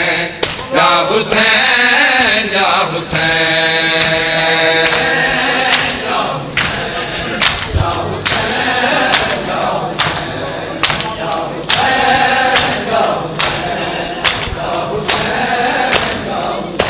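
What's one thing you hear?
A crowd of men chants loudly together in a rhythmic lament.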